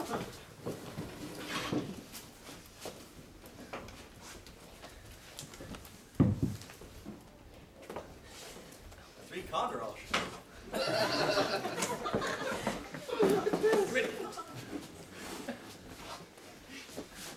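A heavy wooden bookcase door swings open.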